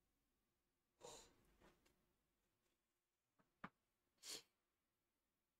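A man coughs close to a microphone.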